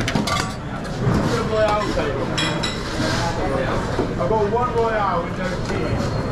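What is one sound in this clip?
Metal trays and bowls clink and clatter.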